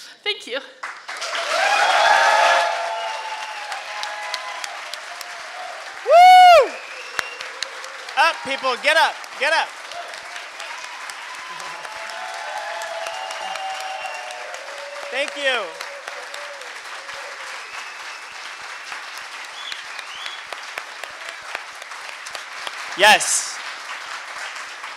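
A large crowd cheers and whoops loudly.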